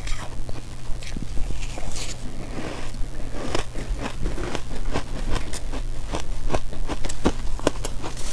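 A woman chews soft crunchy food close to a microphone.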